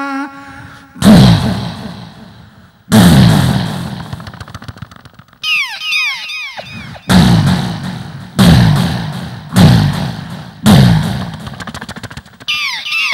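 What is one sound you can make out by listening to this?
A band plays with heavy, booming drum hits.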